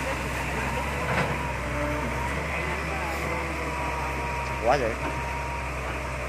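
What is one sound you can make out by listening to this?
A diesel excavator engine rumbles as it works the arm.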